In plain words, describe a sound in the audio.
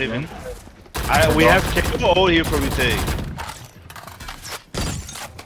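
A rifle fires rapid bursts of gunshots.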